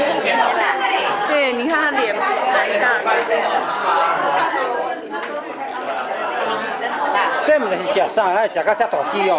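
Several women chat with animation close by.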